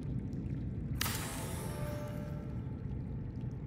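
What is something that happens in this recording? A metal panel slides open with a sudden whoosh and a ringing tone.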